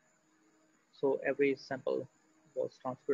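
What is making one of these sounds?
A man speaks calmly through a microphone, as on an online call.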